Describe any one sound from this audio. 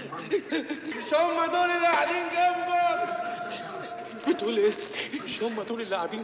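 A man sings in a loud, wailing voice.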